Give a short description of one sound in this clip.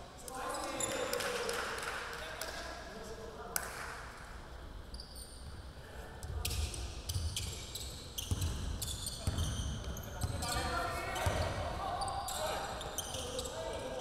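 Young men call out to each other across an echoing hall.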